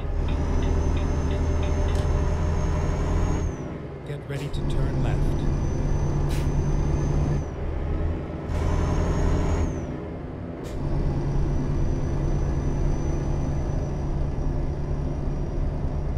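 A heavy diesel truck engine drones as it pulls under load, dropping away briefly at each gear change.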